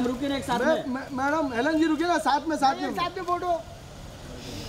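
Men call out loudly nearby.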